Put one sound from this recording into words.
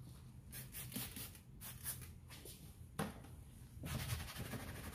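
A spray bottle squirts in short bursts.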